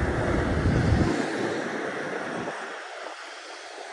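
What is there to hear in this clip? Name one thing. A vehicle drives past on a nearby road.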